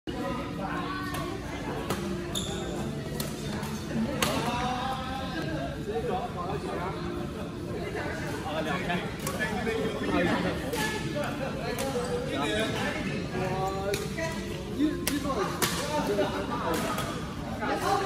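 Men talk and call out nearby in a large echoing hall.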